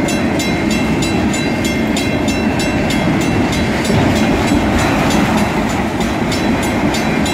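A freight train rumbles and clatters past close by.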